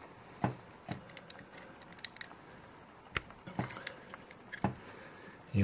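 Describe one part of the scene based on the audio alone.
Small plastic connectors click and snap into place.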